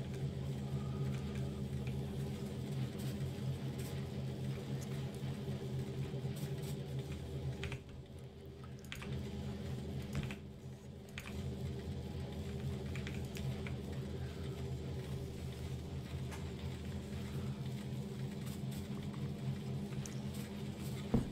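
Machines hum and whir steadily, briefly quietening twice.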